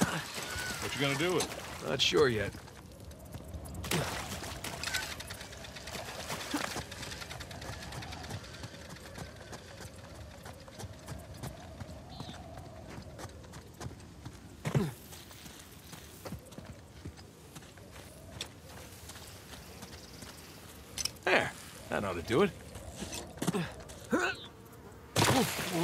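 Footsteps run on stone and dirt.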